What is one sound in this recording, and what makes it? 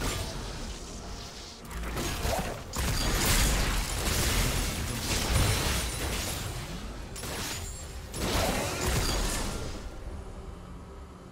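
Magic spells burst and crackle in a busy fantasy battle.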